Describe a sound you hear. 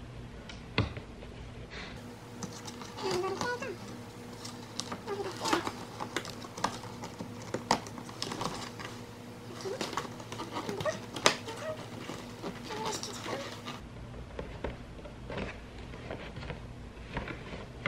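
Stiff cardboard rustles and creaks as it is folded open by hand.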